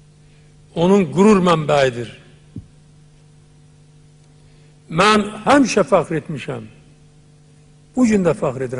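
An elderly man speaks forcefully into a microphone, in short bursts with pauses.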